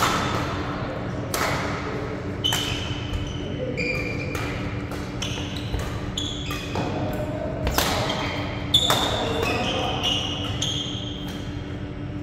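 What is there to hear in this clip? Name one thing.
Badminton rackets hit shuttlecocks with sharp pops in a large echoing hall.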